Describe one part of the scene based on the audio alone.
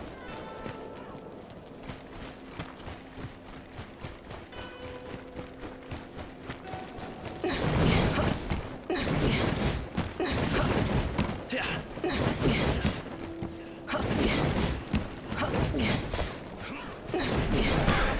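Footsteps crunch on dirt and wooden planks.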